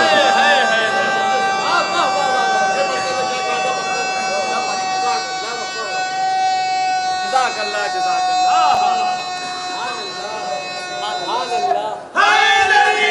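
A man recites in a singing voice through a microphone in an echoing hall.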